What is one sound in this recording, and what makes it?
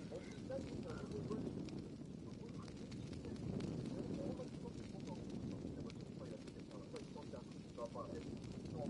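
A torch fire crackles close by.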